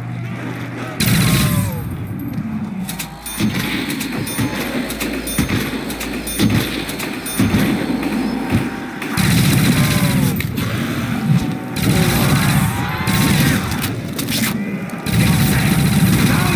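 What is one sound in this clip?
A ray gun fires rapid buzzing blasts.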